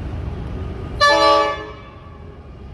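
A train horn blasts loudly from a distance.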